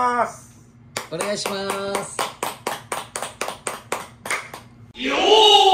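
A man claps his hands in a quick rhythm.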